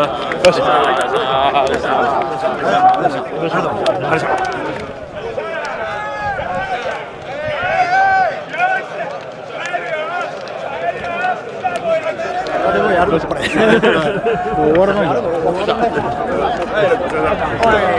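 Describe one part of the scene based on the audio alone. A crowd of men chatter and call out nearby.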